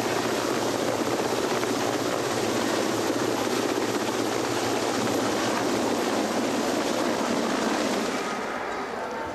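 A helicopter's rotor thumps loudly and steadily overhead.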